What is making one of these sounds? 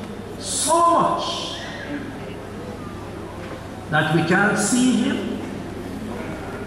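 An elderly man speaks with animation into a microphone, heard through loudspeakers in an echoing hall.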